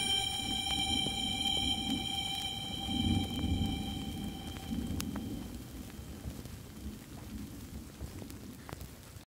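A train rumbles slowly along the tracks, heard from inside a carriage.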